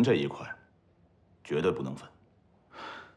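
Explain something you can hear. A man speaks calmly and pleasantly nearby.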